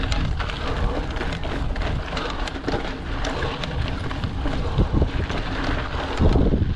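Wind rushes and buffets loudly against the rider.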